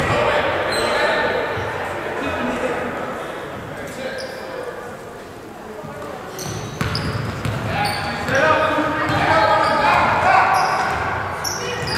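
A crowd of spectators, adults and children, talks and cheers in an echoing hall.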